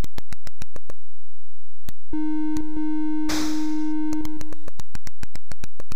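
Rapid electronic ticks from a retro video game pulse in quick succession.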